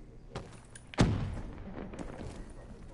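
A gun fires a single loud shot indoors.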